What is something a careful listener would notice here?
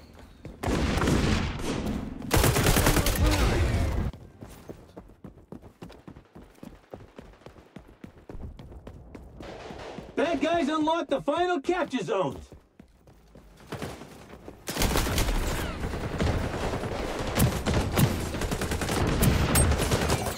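Automatic rifle fire rattles in bursts.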